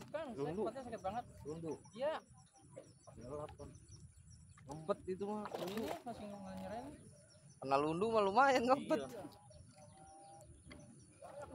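Handfuls of bait patter onto water.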